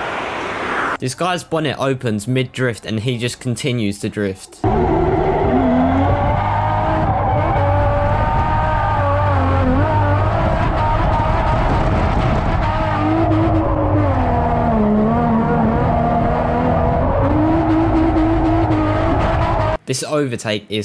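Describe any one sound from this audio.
A car engine revs hard from inside the car, rising and falling in pitch.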